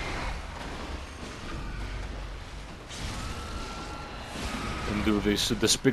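A blade slashes into flesh with wet thuds.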